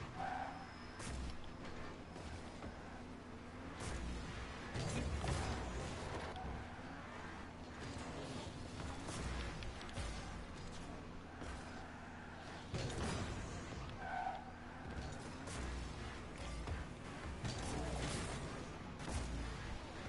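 A car bumps and thuds against walls and a ball.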